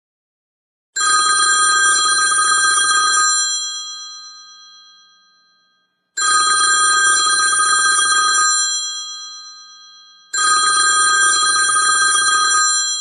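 An old telephone bell rings in repeated long bursts.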